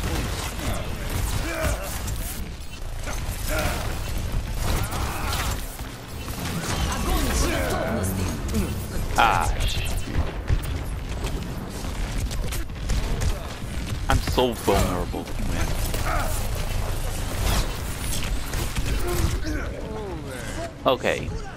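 Gunfire from a video game crackles and thuds rapidly.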